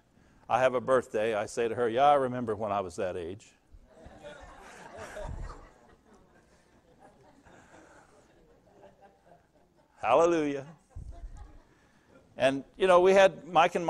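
An elderly man speaks with animation through a microphone in a large room, pausing between phrases.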